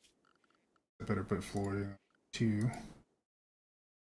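A man speaks casually into a microphone, close by.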